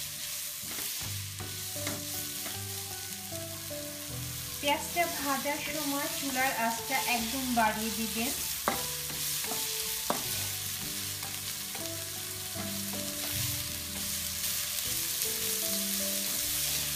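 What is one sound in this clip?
Onions sizzle in a hot pan.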